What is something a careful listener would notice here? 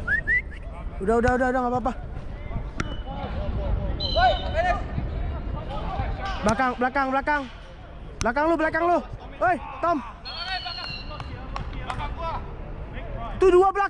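Men shout loudly to each other across an outdoor pitch.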